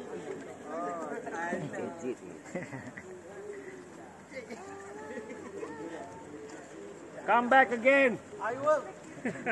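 Women and men talk nearby outdoors.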